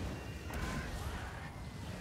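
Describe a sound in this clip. A magic blast bursts with a crackling boom.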